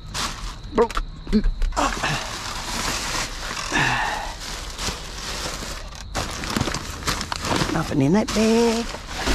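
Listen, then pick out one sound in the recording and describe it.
Plastic garbage bags rustle and crinkle as hands dig through them.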